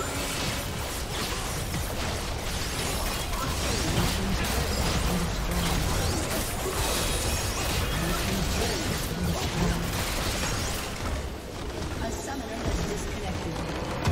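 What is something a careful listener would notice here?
Game spell effects and attacks crackle and clash in a busy fight.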